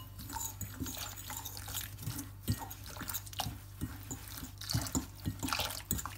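Water trickles from a jug into a bowl.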